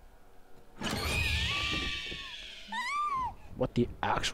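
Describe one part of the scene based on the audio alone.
A young man screams in terror.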